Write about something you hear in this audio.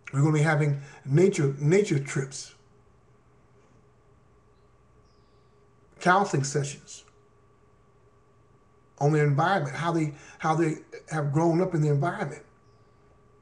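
A middle-aged man speaks calmly and close to a microphone, in short bursts with pauses.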